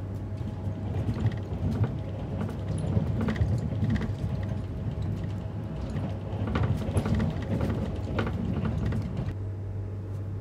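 Train wheels clatter and knock over the rail joints.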